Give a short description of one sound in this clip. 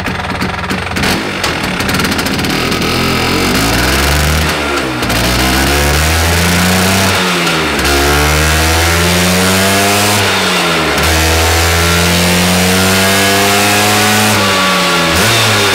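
A scooter engine revs hard again and again, rising and dropping in pitch.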